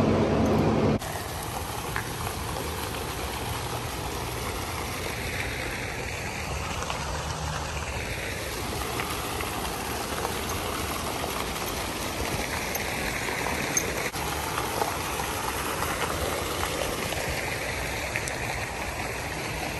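Water from a fountain splashes steadily outdoors.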